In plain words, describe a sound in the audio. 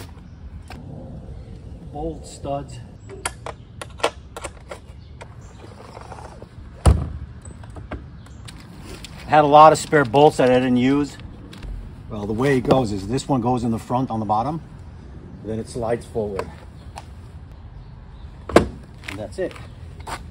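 A plastic case knocks and clicks against a motorcycle.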